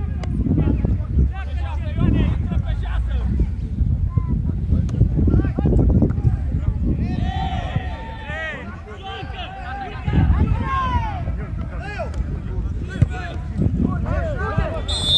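Men shout and call out across an open field at a distance.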